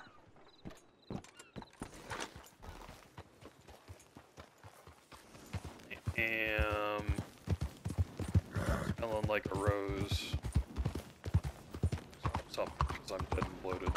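A horse's hooves clop on a dirt road at a steady trot.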